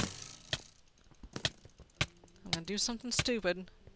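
A sword strikes a creature with sharp, repeated thuds.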